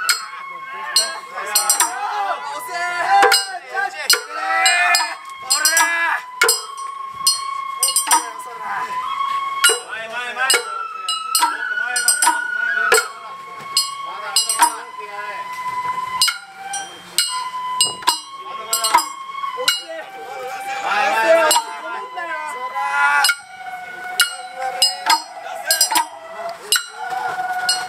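Men chant and shout together close by, outdoors.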